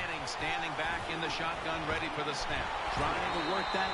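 Football players' pads clash in a tackle.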